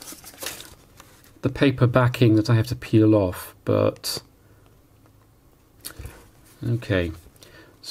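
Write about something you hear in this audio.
Adhesive backing paper crinkles and peels off a sheet.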